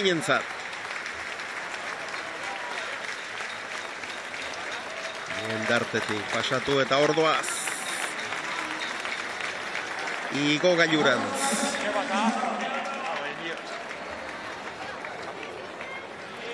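A large crowd claps steadily in a big echoing hall.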